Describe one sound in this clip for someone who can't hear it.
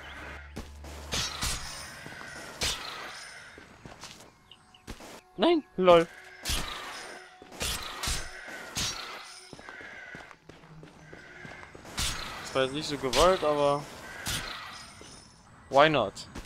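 Short video game sound effects whoosh and chime.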